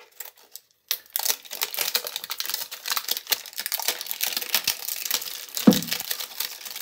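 Plastic shrink wrap crinkles as it is peeled off a box.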